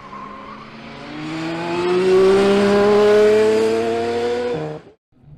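A race car engine whines and rises in pitch as it accelerates.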